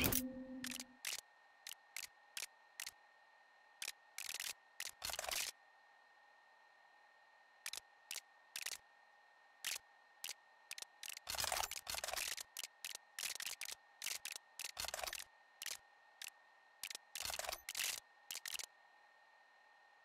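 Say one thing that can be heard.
Short interface clicks and ticks sound at irregular intervals.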